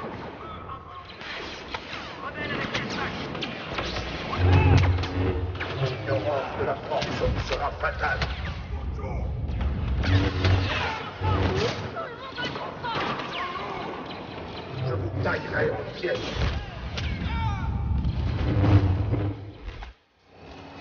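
Laser blasters fire rapid zapping shots.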